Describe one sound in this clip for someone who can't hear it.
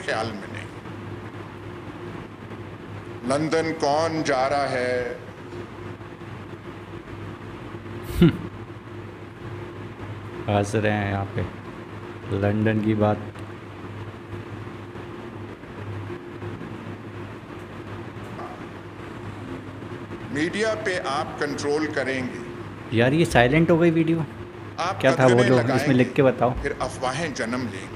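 An elderly man makes a speech through a loudspeaker.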